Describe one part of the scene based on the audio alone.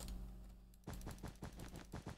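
A block breaks apart with quick crumbling crackles.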